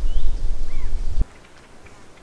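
Wind blows outdoors, rustling tall grass.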